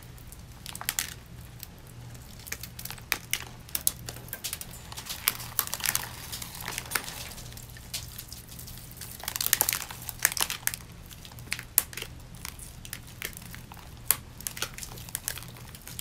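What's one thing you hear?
Rhinestones click and rustle as a mask is peeled off skin.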